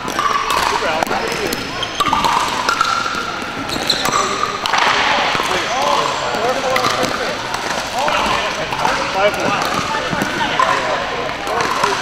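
Players' shoes squeak on a wooden floor.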